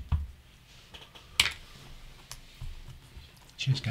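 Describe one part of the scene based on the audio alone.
Wooden game pieces clack on a table.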